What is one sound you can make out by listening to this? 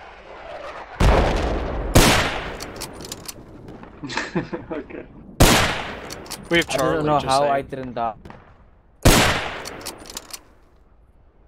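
Loud rifle shots crack and echo across open country.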